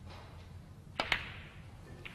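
A cue sharply strikes a snooker ball.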